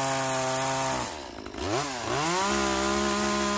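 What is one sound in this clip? A chainsaw engine drops to idle and then revs back up.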